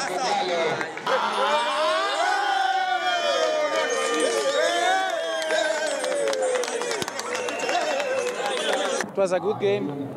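A group of men sing and cheer loudly outdoors.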